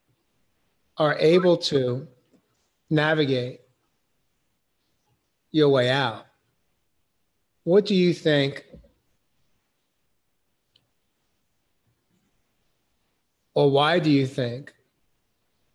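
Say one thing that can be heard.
An older man speaks calmly in short phrases over an online call.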